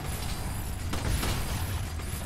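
A gunshot fires in a video game.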